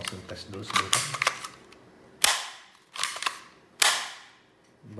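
A pistol slide scrapes as it slides along its frame.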